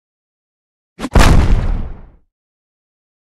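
A loud whooshing blast booms as pieces explode.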